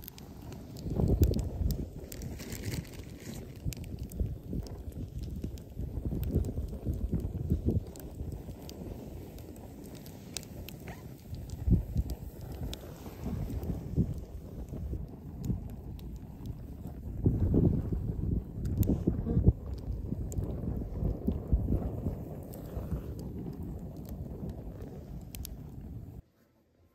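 Wood pops sharply in a fire.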